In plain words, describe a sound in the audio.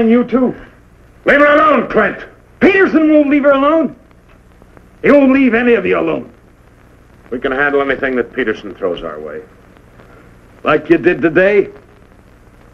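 A man speaks firmly and sternly nearby.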